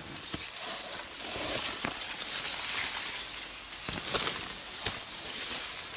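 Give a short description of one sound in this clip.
Leaves rustle and brush close by.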